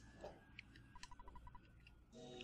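Short electronic beeps tick rapidly as text prints in a video game.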